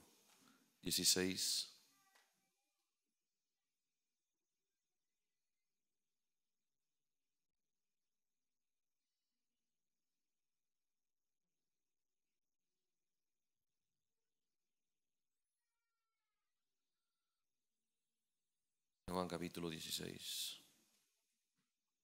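A man speaks calmly into a microphone in short bursts, with long silent pauses.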